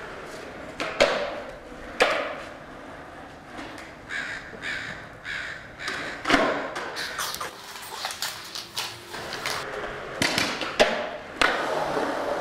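A skateboard clacks sharply against concrete.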